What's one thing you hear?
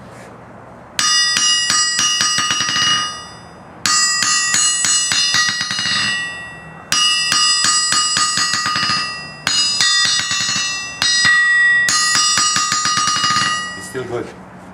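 A hammer strikes an anvil in fast bursts of ringing clangs.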